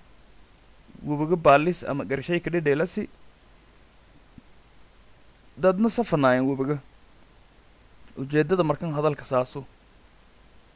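A young man speaks calmly and clearly close to a microphone, in short phrases with pauses.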